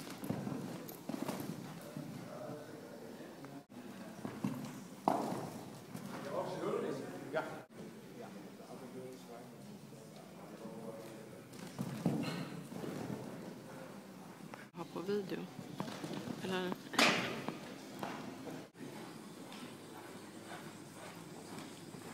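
Horses' hooves thud softly on sand while cantering.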